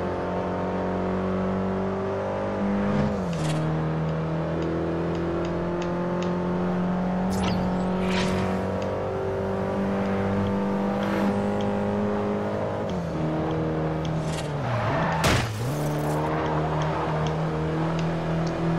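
A racing car engine roars steadily at high speed, shifting gears now and then.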